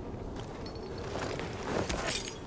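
Hands rummage through a crate of loose metal scraps, rattling and clinking.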